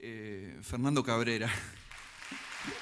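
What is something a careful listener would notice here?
A band plays a final chord that rings out in a large hall.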